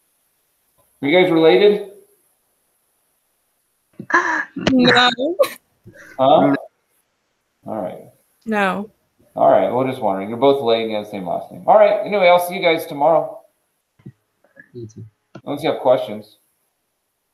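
A man speaks calmly in short bursts, close to the microphone in an online call.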